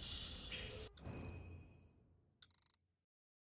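A game menu clicks as it opens.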